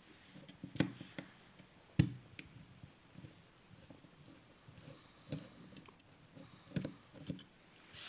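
A screwdriver scrapes and ticks as it turns a small brass jet in a metal carburettor.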